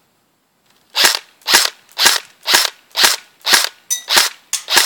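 A toy gun fires a quick series of sharp shots.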